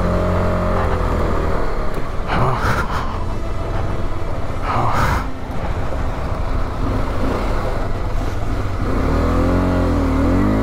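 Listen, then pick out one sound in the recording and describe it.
A motorcycle engine rumbles steadily and revs up and down.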